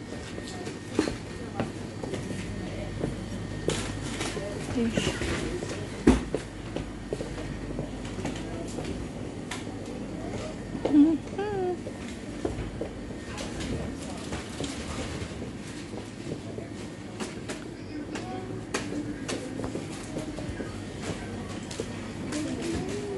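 Footsteps tread slowly on a hard floor.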